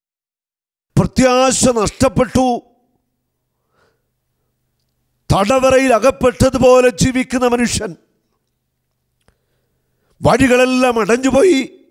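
A middle-aged man speaks with emphasis into a microphone, in short bursts with pauses.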